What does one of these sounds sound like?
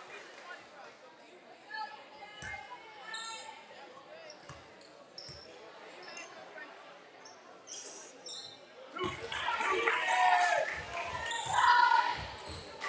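A crowd murmurs and chatters in an echoing gym.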